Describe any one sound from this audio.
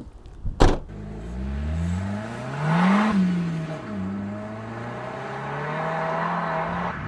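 A car engine accelerates away, rising and falling in pitch as it shifts gears.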